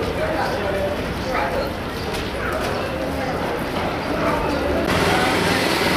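A crowd murmurs and chatters in a busy echoing hall.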